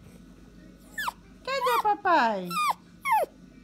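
A small dog whines in high, falling cries close by.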